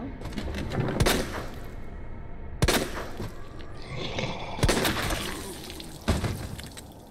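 A pistol fires several loud shots that echo briefly.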